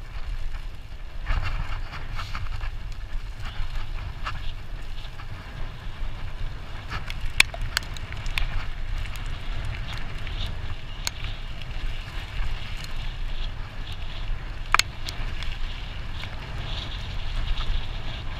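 Wind rumbles steadily past the microphone.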